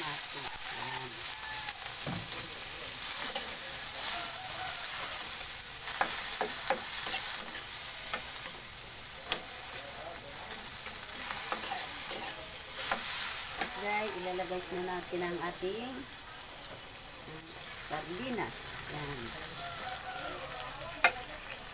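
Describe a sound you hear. Vegetables sizzle as they fry in a wok.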